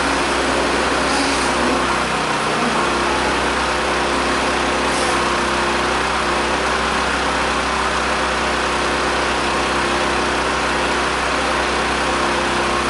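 Rain patters steadily on wet ground outdoors.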